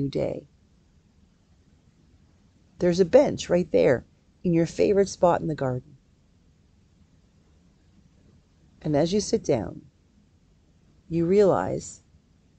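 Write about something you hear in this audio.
A middle-aged woman speaks calmly in short phrases, close to a microphone, as if on an online call.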